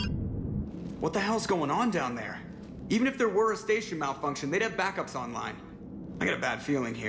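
A man speaks with surprise and urgency, close up.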